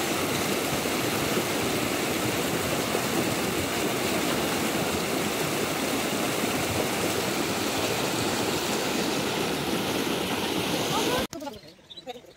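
Water rushes and splashes over rocks close by.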